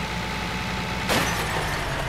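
A truck crashes with a loud crunch of metal.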